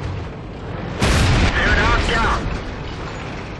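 A tank cannon fires with a loud blast.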